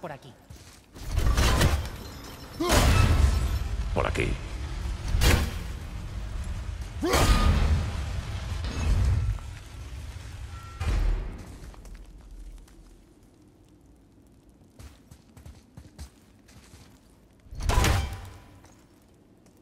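An axe strikes a wooden gate with heavy, booming thuds.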